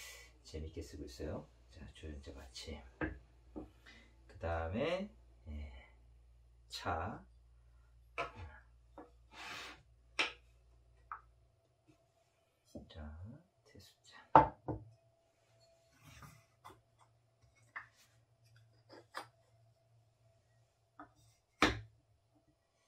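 Ceramic cups and a teapot clink and knock on a wooden table.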